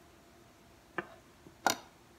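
A knife knocks down onto a cutting board.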